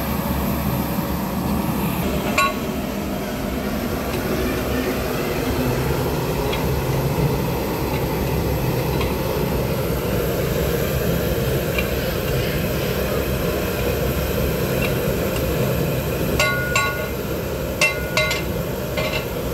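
A gas burner roars steadily under a pot.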